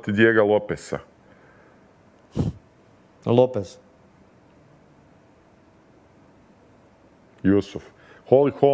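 A man speaks in short bursts through a microphone, with pauses between.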